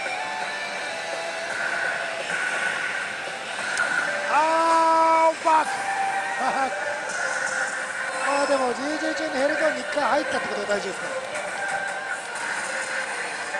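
A slot machine plays loud electronic music and jingles.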